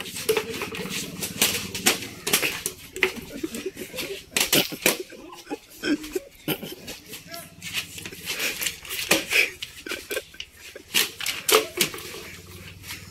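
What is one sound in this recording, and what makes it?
Young men laugh and shout playfully.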